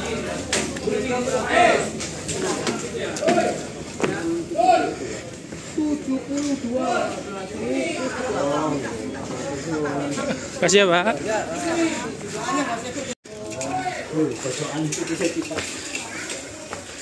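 Young men talk nearby.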